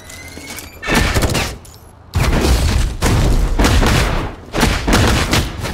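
Heavy impacts thud and boom.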